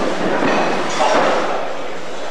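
A body slams down onto a wrestling mat with a heavy thud.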